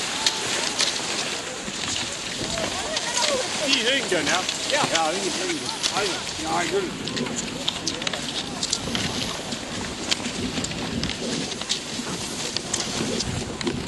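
Ski poles click and crunch into the snow.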